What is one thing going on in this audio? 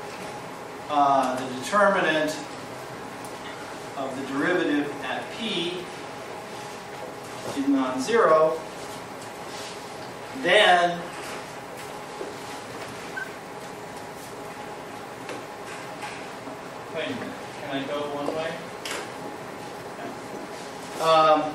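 A man speaks calmly in an echoing room, pausing often.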